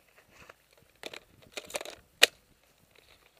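Footsteps crunch on dry dirt and twigs close by.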